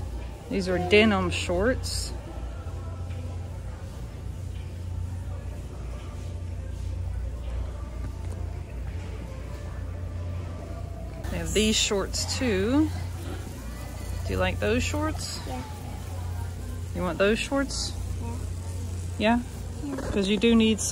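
Fabric rustles as clothes are handled.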